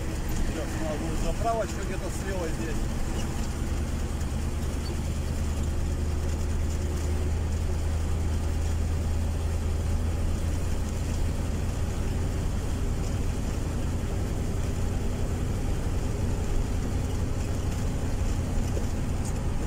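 A vehicle's engine hums steadily with a low drone.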